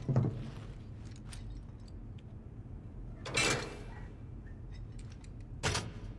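Boots clank on rungs of a metal ladder.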